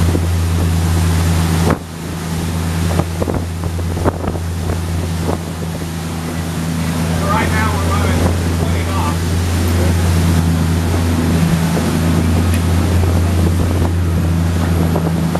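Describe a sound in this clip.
Water rushes and splashes along a boat's hull.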